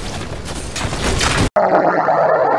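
An explosion bursts with a loud crackling roar.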